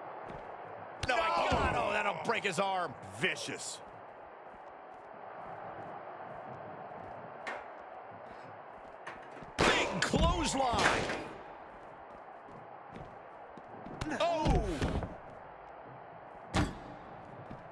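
Heavy blows thud and slam.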